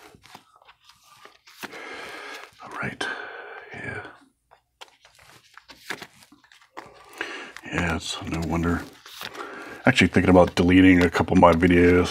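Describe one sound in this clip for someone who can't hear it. Thin cards tap and slide against each other.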